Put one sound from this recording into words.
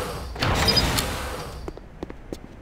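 A heavy metal door slides open with a whoosh.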